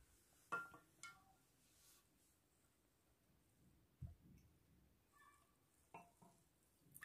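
Glass and metal clink as utensils are set down.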